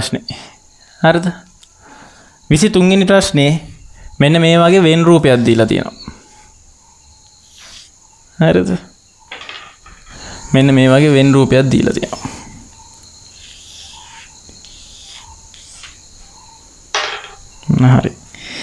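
A young man speaks clearly and calmly, close by.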